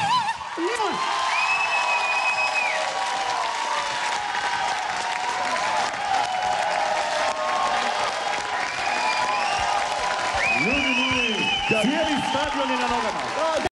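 A studio audience claps steadily and loudly.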